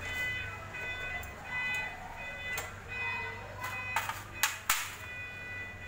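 Metal tools clink and rattle in a tray.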